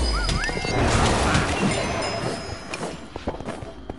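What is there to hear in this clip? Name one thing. A bright chime rings out for a level gain.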